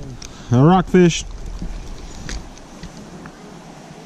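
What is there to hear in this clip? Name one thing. A fishing reel clicks briefly.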